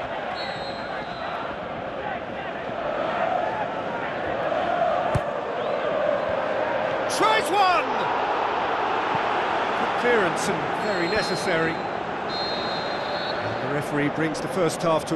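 A large stadium crowd roars and chants steadily.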